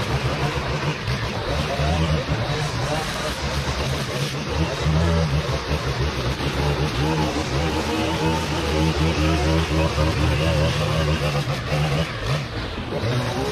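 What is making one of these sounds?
A string trimmer engine buzzes loudly and close by, cutting through weeds.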